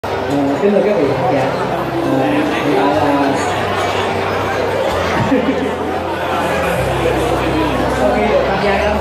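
A keyboard plays chords through loudspeakers.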